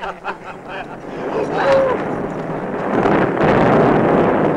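A crowd of men shout and clamour excitedly.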